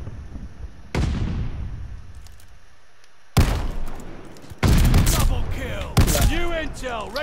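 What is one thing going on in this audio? A heavy gun fires loud booming shots.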